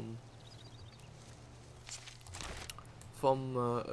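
Footsteps tread softly on grass.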